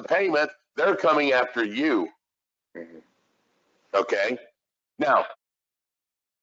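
A middle-aged man talks calmly over an online call.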